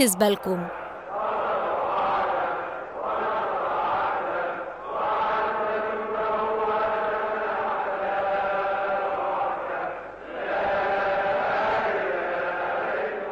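A huge crowd chants together in the open air.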